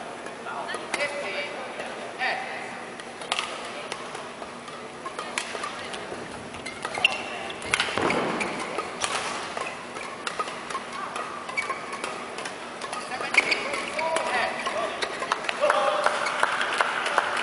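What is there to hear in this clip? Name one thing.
Shoes squeak on a court floor in a large echoing hall.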